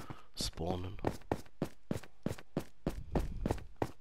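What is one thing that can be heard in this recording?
Footsteps tap on stone steps at a quick, even pace.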